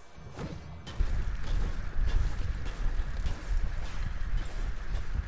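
A pickaxe chops repeatedly against a brick wall.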